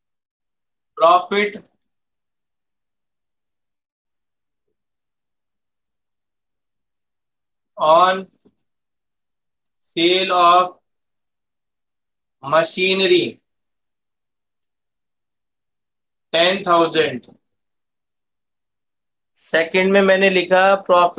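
A man speaks calmly in short bursts, heard close through a microphone.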